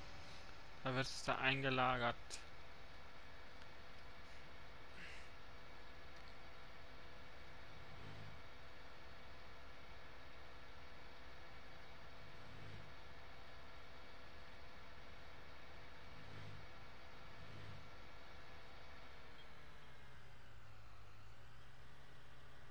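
A tractor engine drones steadily, then its pitch drops as it slows.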